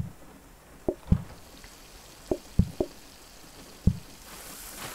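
Short soft thuds and pops of game sound effects sound now and then.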